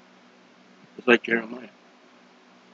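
A man speaks a few words briefly and close to a microphone.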